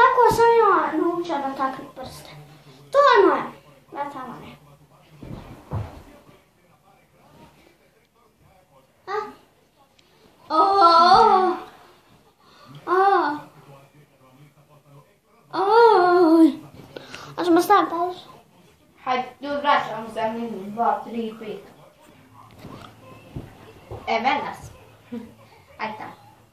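A young boy talks loudly and with animation close by.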